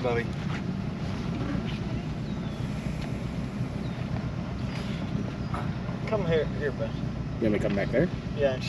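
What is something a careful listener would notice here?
A boat engine roars steadily.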